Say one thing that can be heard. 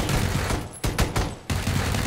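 Gunshots fire in rapid bursts at close range.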